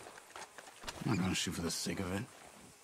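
A man in a deep voice speaks firmly, close by.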